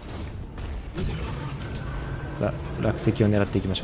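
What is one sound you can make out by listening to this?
A huge monster growls with a deep rumble.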